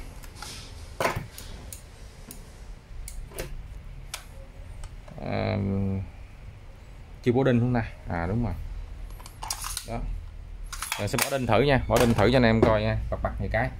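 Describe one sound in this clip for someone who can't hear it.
A hard plastic case clunks and rattles as a tool is set into it.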